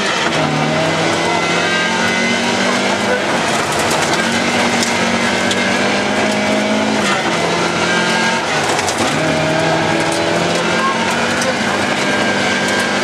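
Stones ping against the underside of the car.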